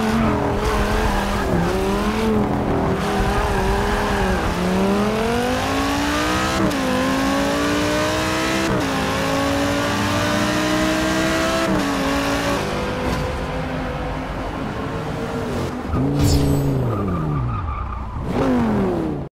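A race car engine roars and revs, shifting up through the gears as it speeds up.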